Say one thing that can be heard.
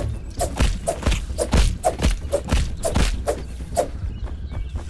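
Quick, sharp blows hack at a tough plant stalk over and over.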